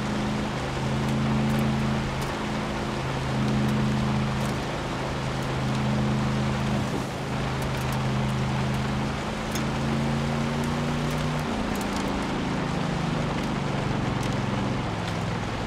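Tyres crunch and rumble over gravel.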